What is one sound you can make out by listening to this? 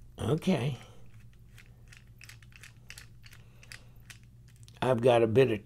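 A small screwdriver ticks softly as it turns a tiny screw.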